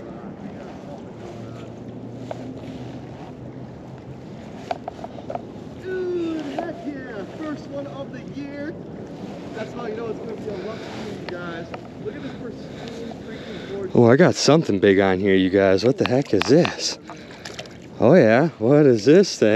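Water laps gently against a rocky shore.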